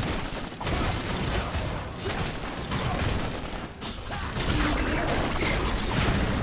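Magic spells crackle and boom in a fast video game battle.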